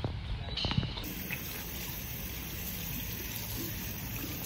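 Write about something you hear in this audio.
Water runs from a tap and splashes over hands.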